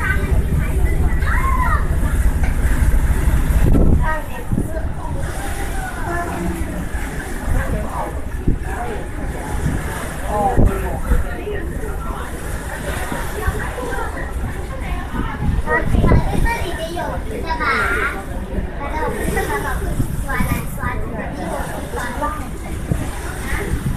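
Water splashes and laps against the side of a moving boat.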